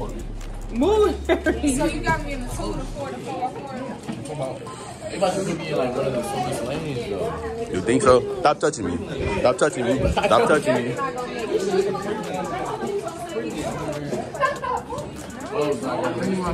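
Teenagers chatter and laugh in a busy room.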